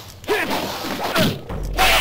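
Flames burst with a sudden roar.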